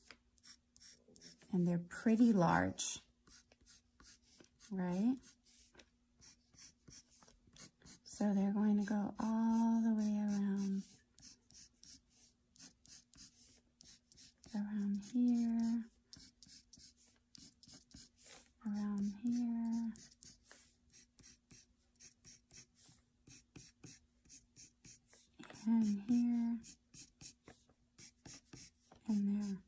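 A pencil scratches quickly across paper in short strokes.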